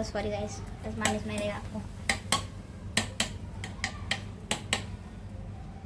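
A metal fork clinks and scrapes against a pot.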